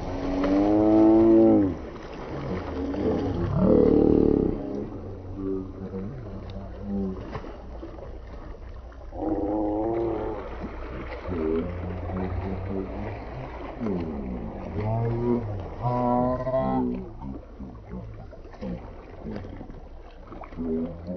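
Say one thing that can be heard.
Young people shout and call out to one another outdoors across open water.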